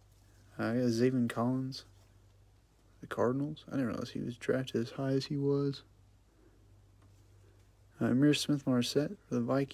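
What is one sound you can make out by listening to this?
Trading cards slide and rub against each other in gloved hands.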